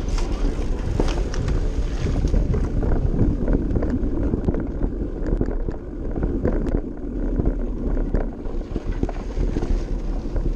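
Bicycle tyres crunch and rattle over a bumpy dirt track.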